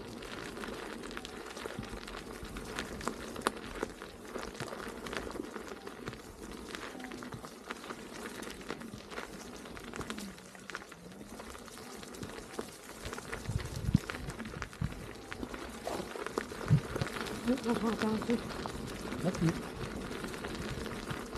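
Tyres roll and crunch over dry leaves and dirt.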